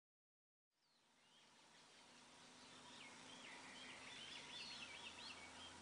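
A light wind rustles through trees outdoors.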